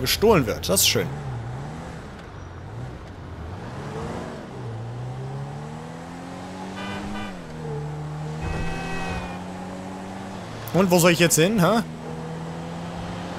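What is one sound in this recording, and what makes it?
A car engine hums and revs up and down as the car drives along.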